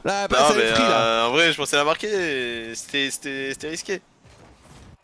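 A man laughs loudly and talks with animation close to a microphone.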